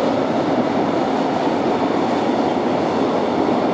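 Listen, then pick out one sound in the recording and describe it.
A freight train rumbles along the tracks in the distance.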